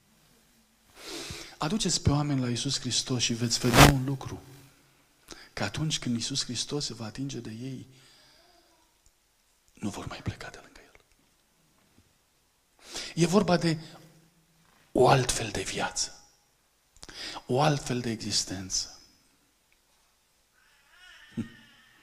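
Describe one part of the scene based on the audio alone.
A middle-aged man speaks with animation through a microphone in a large echoing hall.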